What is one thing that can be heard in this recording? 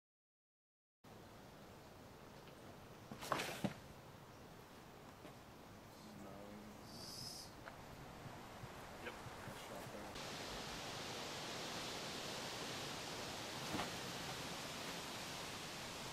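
A light breeze rustles through trees outdoors.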